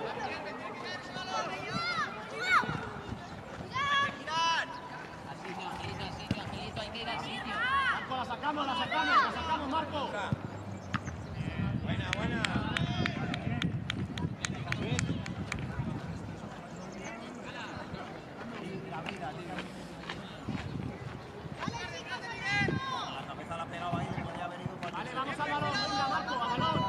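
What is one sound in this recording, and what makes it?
Children shout and call out across an open outdoor field.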